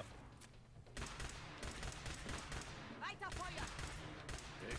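A laser pistol fires.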